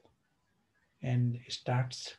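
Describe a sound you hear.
A middle-aged man speaks calmly and close to the microphone.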